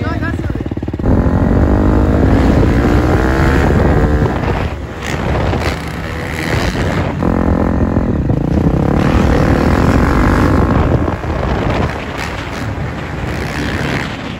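A dirt bike engine revs loudly and roars past.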